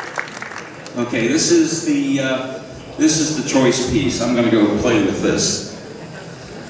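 A man speaks calmly into a microphone, heard over loudspeakers in a large hall.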